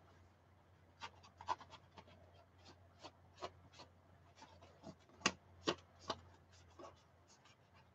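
Circuit boards clack against each other.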